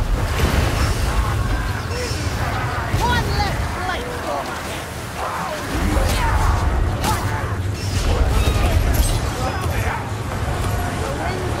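A sword slashes into bodies with heavy, wet hits.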